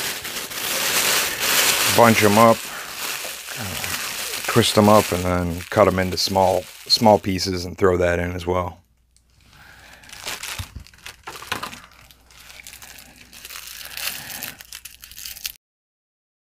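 Paper crinkles and rustles as it is crumpled by hand.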